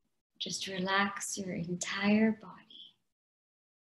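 A young woman chants calmly over an online call.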